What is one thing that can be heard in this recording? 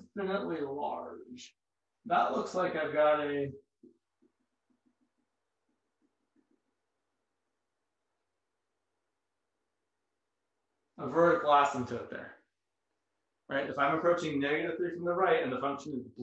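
A man speaks calmly and clearly nearby, explaining.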